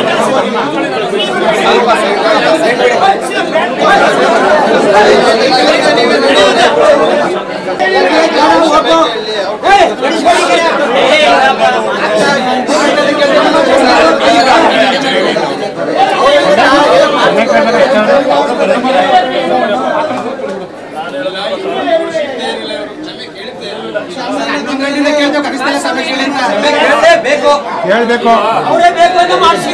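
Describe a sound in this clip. A crowd of men and women talk loudly over one another nearby.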